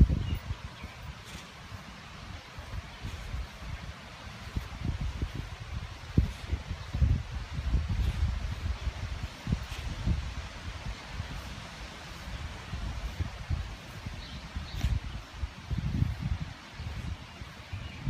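A puppy noses and digs in soil and grass, rustling and snuffling.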